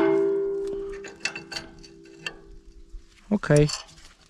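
Metal rings briefly after a knock.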